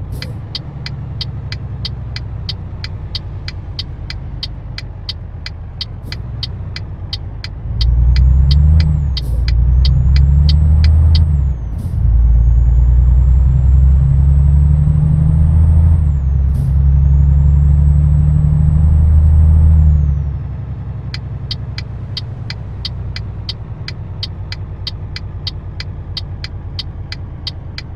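A turn indicator ticks steadily.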